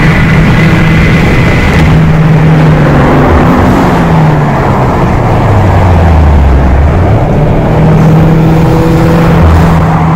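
A car engine hums and rumbles steadily from inside the car.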